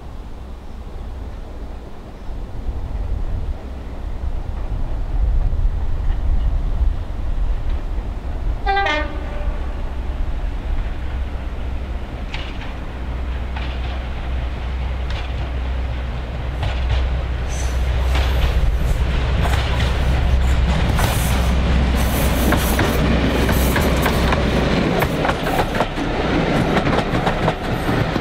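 A diesel locomotive engine rumbles deeply as it approaches and passes close by.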